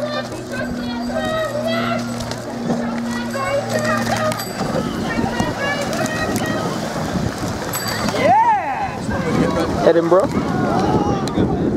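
Oars splash rhythmically in the water as a rowing boat glides past.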